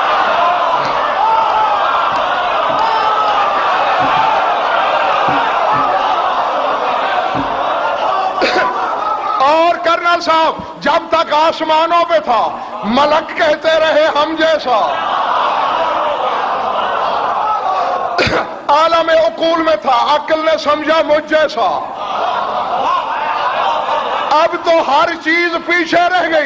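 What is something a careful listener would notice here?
A man speaks and chants with strong feeling into a microphone.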